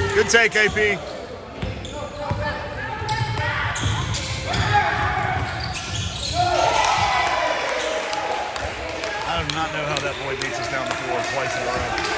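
Players and spectators shout and call out in a large echoing gym.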